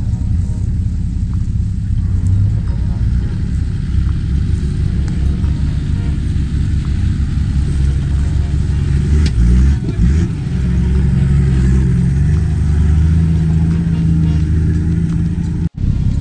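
An off-road vehicle's engine rumbles and idles close by.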